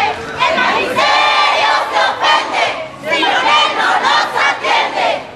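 A woman shouts loudly nearby.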